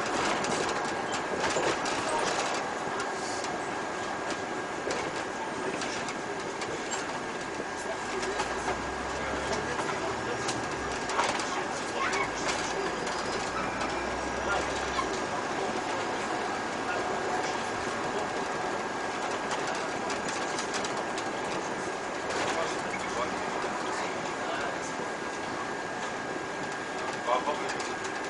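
A bus drives along a street, heard from inside.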